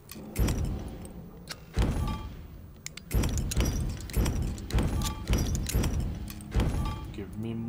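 Heavy thuds with a short chime sound as menu items are stepped through.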